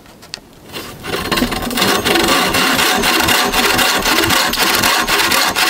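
A bow saw rasps back and forth through wood.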